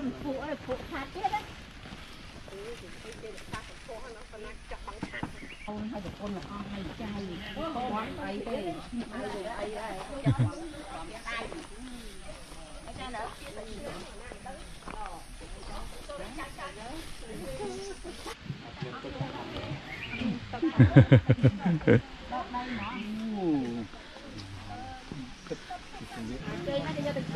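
Several adults chat and call out nearby outdoors.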